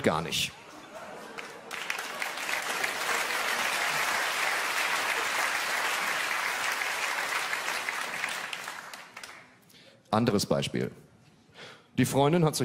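A man speaks into a microphone on stage.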